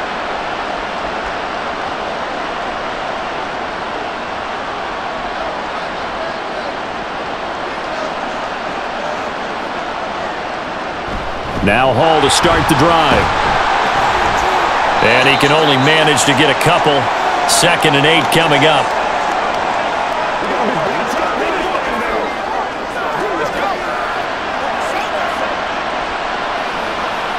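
A large crowd cheers and roars steadily in a big stadium.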